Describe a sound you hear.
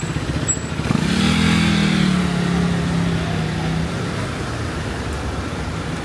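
A car engine hums as a car drives slowly past close by.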